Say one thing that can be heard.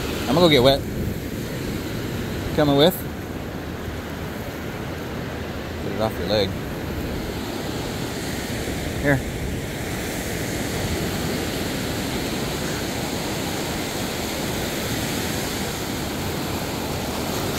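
Waves wash up and break on a beach with a steady rushing sound.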